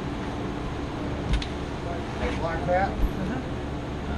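Footsteps thud on a boat's fibreglass deck.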